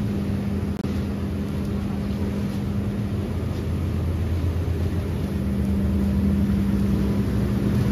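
A machine drones steadily nearby.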